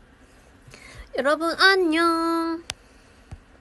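A young woman speaks briefly and expressively, close to a phone microphone.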